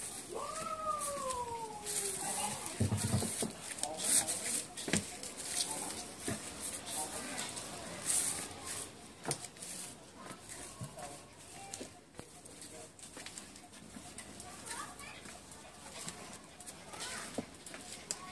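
A small dog's paws patter softly on stepping stones and grass.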